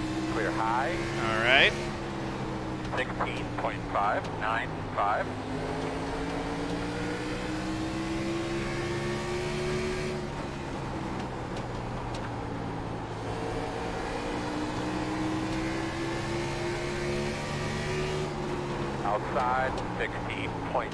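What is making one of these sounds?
A race car engine drones steadily, rising and falling in pitch.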